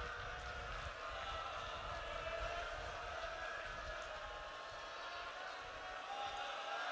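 A man recites in a sorrowful, emotional voice through a microphone.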